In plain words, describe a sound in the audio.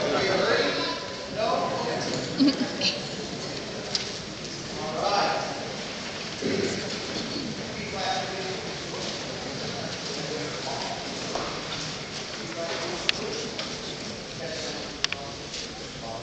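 A large wind band plays in a big echoing hall.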